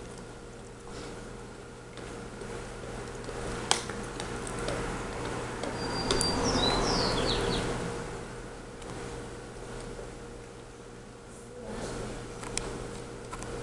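A large dog gnaws on a chew toy.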